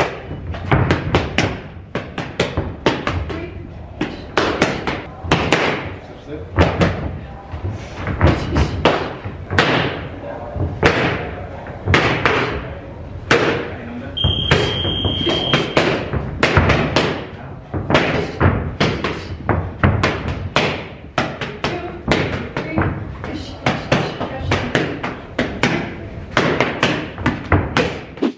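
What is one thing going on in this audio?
Boxing gloves smack sharply against punch mitts in quick bursts.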